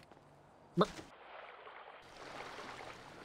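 Water sloshes and churns in a pool.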